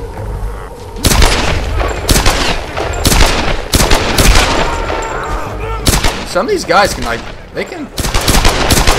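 A pistol fires shot after shot, loud and sharp.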